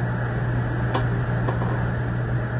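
Fingers rub and click together close by.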